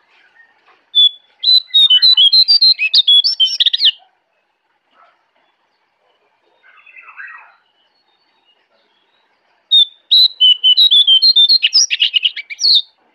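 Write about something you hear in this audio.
A bird sings close by in loud, rapid bursts of high chirps and warbles.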